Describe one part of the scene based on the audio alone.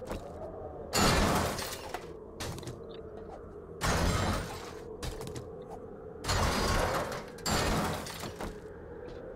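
A pickaxe strikes a metal door with loud, heavy blows.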